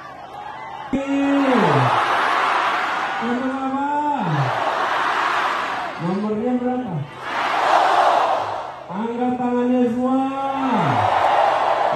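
A huge outdoor crowd roars and cheers in reply.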